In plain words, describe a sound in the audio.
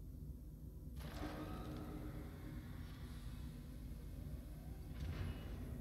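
A mechanical arm whirs as it lifts a sealed pod.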